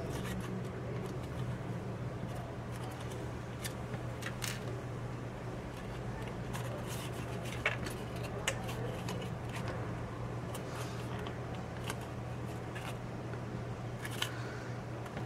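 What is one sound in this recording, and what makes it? Paper crinkles and rustles as it is folded by hand.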